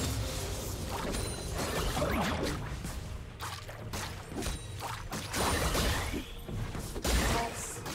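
Game spell effects whoosh and crackle in a battle.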